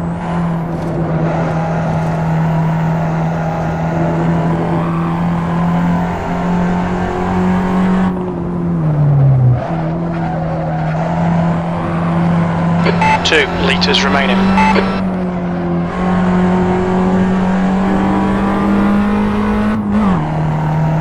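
A small hatchback's engine runs at high revs, heard from inside the cabin.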